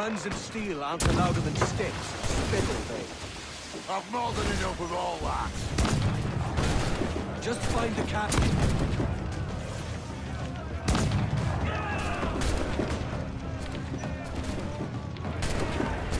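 Explosions rumble and crack.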